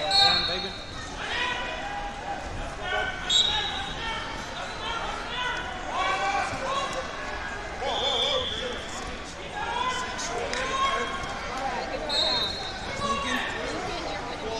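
A crowd of people shout and chatter in a large echoing hall.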